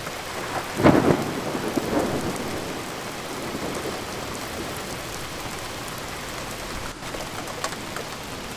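Rain patters steadily against a window.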